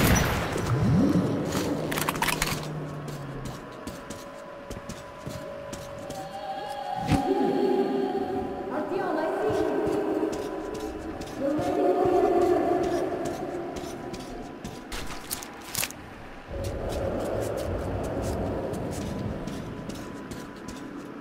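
Footsteps crunch over loose debris.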